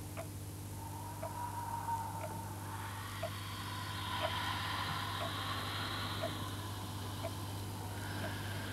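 An elderly woman speaks in a strained, wailing voice.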